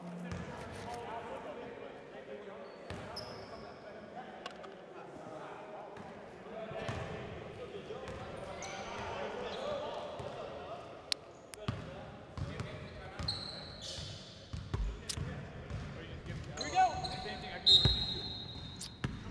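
Men talk and call out across a basketball court.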